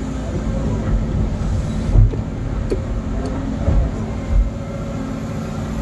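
Stones and rubble scrape and clatter under an excavator bucket.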